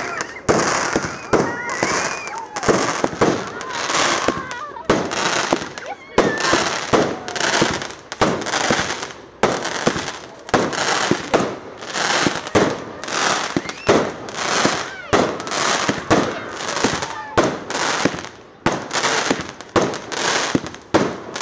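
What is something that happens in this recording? Fireworks burst overhead with loud, rapid bangs.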